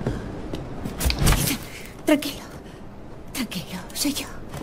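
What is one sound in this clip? A young woman speaks softly and calmly close by.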